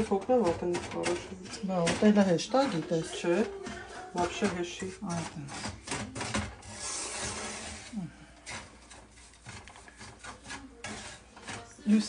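A wooden spoon scrapes and stirs food in a frying pan.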